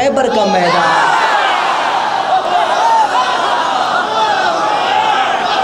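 A young man chants loudly into a microphone, heard through loudspeakers.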